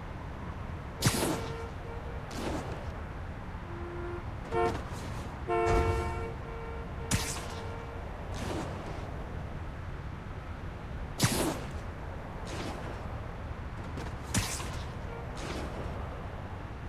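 Sharp whooshing swings rush past again and again.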